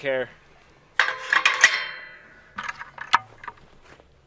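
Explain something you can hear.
A metal gate rattles and clangs.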